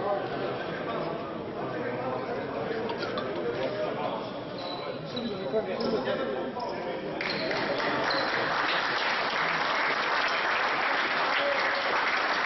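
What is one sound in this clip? A crowd of spectators murmurs in a large echoing hall.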